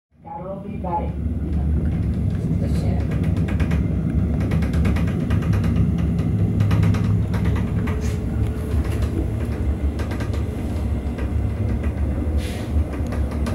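A train rumbles steadily along the tracks, with wheels clicking over rail joints.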